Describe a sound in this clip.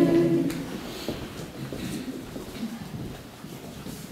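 A man chants in a low voice in an echoing room.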